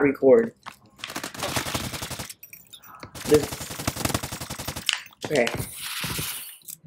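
A rapid-fire rifle shoots in quick bursts.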